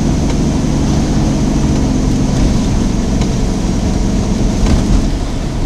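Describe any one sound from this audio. A car engine and tyres rumble steadily on a wet road.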